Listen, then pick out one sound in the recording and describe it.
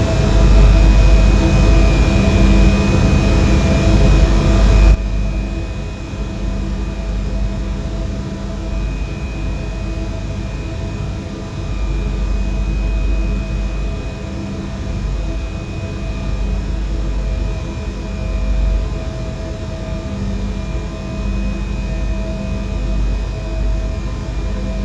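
An electric train hums and rumbles steadily along the tracks.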